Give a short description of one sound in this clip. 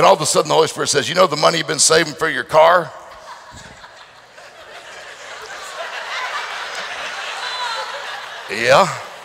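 A middle-aged man speaks with animation through a headset microphone in a large hall.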